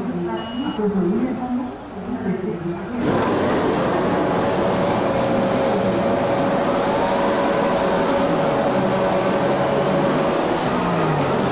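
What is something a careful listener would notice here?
A racing car engine revs loudly.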